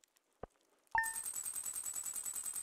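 A rapid ticking of a tally counter runs on steadily.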